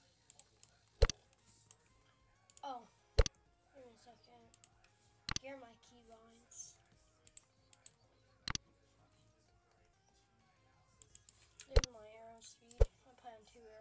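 A game menu clicks sharply several times.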